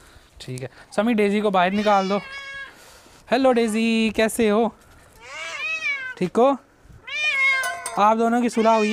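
Cats meow loudly and repeatedly close by.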